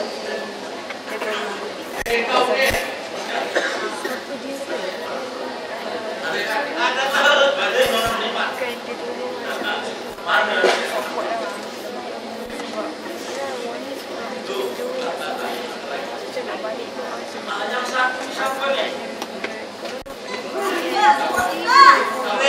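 A woman sings into a microphone over loudspeakers.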